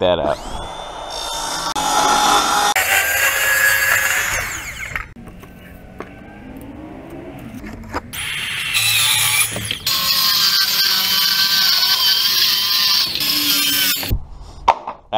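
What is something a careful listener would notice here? A circular saw whines loudly as it cuts through a board.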